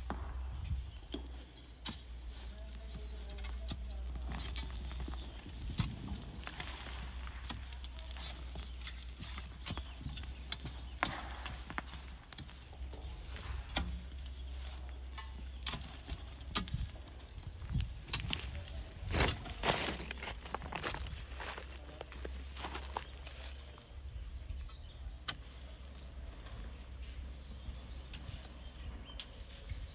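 Loose stones crunch and scrape under a climber's feet.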